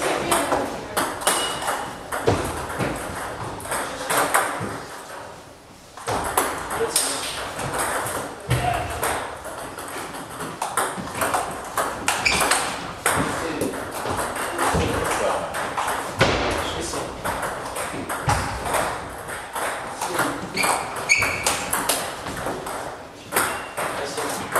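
A ping-pong ball clicks back and forth between paddles and the table in a large echoing hall.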